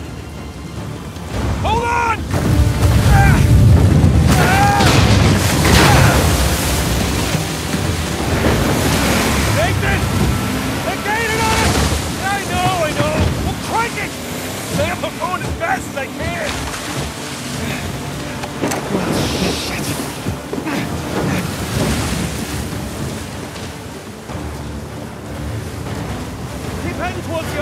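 A boat engine roars steadily.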